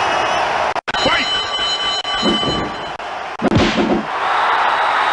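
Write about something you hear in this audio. Heavy blows thud as wrestlers strike each other.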